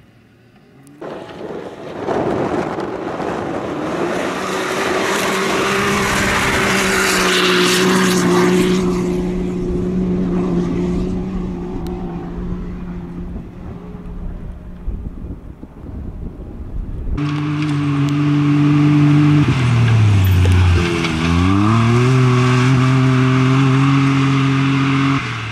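Tyres spray dirt and gravel as a buggy skids through turns.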